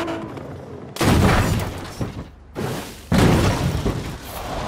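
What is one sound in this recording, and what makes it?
A car crashes through a roof with loud impacts.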